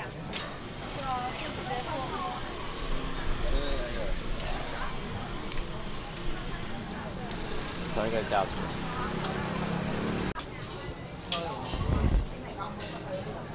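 A young woman talks nearby in a cheerful voice.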